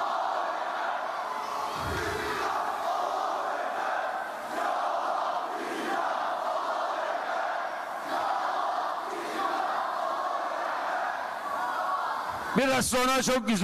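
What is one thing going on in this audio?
A middle-aged man speaks steadily through a microphone and loudspeakers in a large echoing hall.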